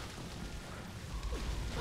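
An explosion bursts with a deep boom.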